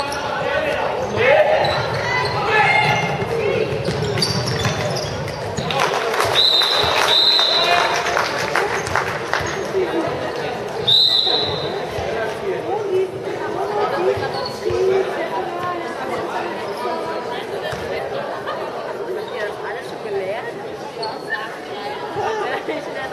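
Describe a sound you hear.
Young girls shout and call out during play, echoing in a large hall.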